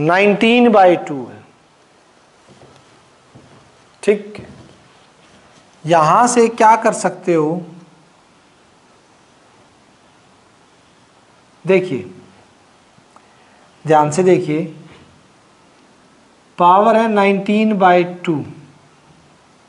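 A man speaks calmly in short phrases, close to a microphone, with pauses in between.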